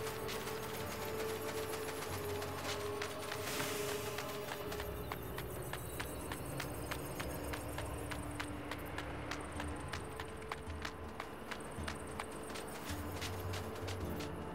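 Footsteps patter quickly on dirt and rock.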